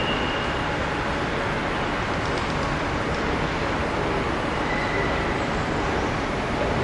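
A train rumbles steadily as it approaches along the tracks.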